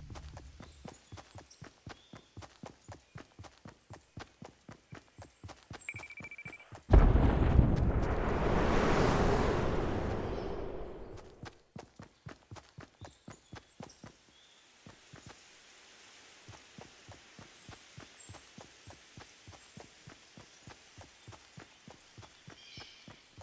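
Quick footsteps run steadily over grass and stone.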